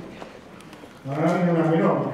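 An elderly man sings loudly nearby.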